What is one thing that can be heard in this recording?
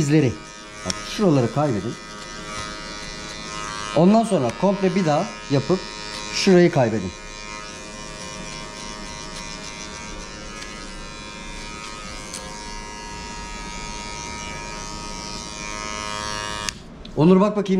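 Electric hair clippers buzz steadily up close.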